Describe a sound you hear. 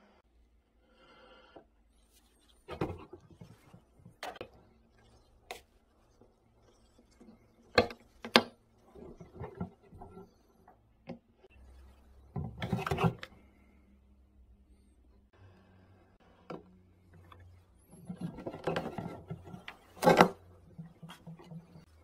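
A plastic bottle crinkles and crackles as it is handled.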